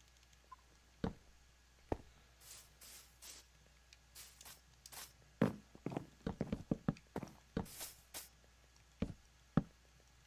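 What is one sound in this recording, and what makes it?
Wooden blocks are placed with soft knocking thuds.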